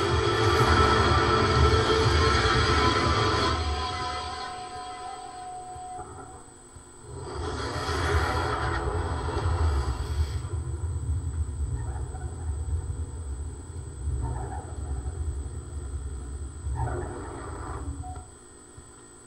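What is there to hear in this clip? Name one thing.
Loud music from a game trailer plays through loudspeakers in a large hall.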